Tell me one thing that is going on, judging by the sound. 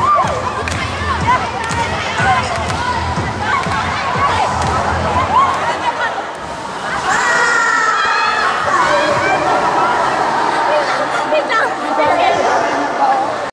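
A crowd of young people chatters and shouts loudly all around in a large echoing hall.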